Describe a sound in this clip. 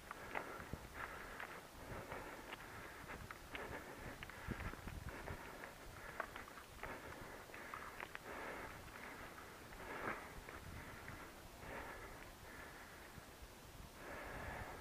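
Footsteps crunch over dry crop stubble.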